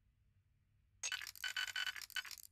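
Electronic game clicks and bleeps sound in quick bursts.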